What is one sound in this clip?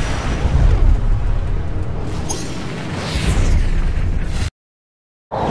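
Magic spells crackle and whoosh in bursts over a low rumble.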